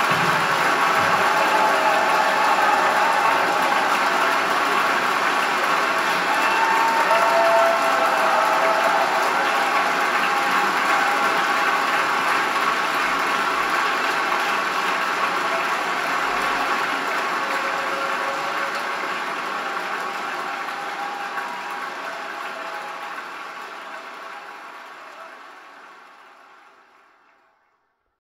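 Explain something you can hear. Music plays through loudspeakers in a room and slowly fades out.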